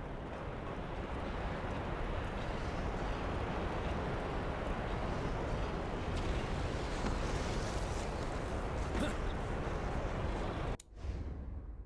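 Lava rumbles and roars steadily.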